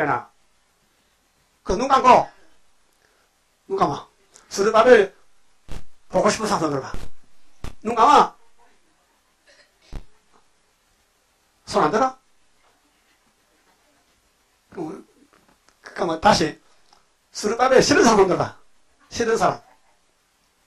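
An elderly man preaches forcefully into a microphone, in short bursts with pauses.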